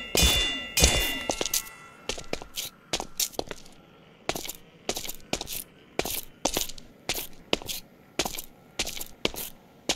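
Footsteps crunch on sand at a steady walking pace.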